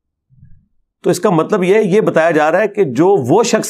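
A man speaks clearly into a close microphone, with animation.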